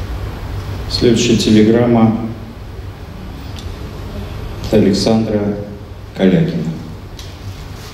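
A middle-aged man reads out slowly through a microphone in a large echoing hall.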